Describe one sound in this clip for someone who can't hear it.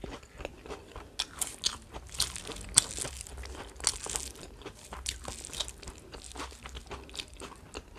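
Fingers squelch as they mix rice and food.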